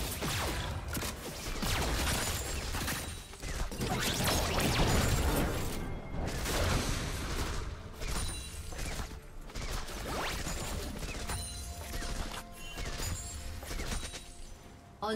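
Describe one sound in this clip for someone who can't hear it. Game spell effects whoosh and crackle in a fast battle.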